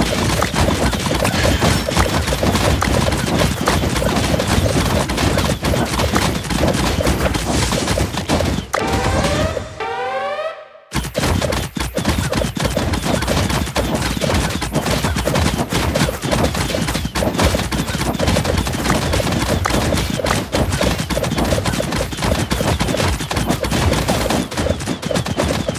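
Video game battle effects clatter and pop rapidly.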